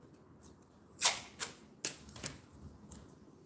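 A strip of tape peels off a roll and tears.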